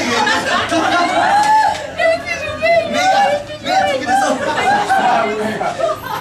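A crowd of people talks and murmurs indoors.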